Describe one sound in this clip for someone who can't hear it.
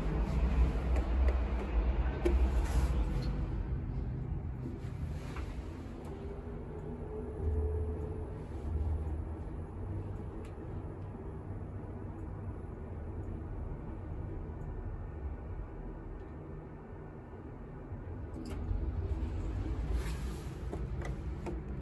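A button clicks when pressed.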